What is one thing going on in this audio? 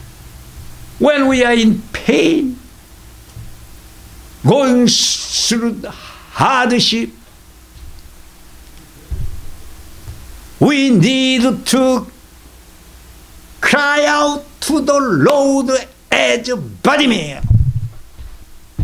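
An elderly man sings with feeling into a microphone, in short phrases broken by pauses.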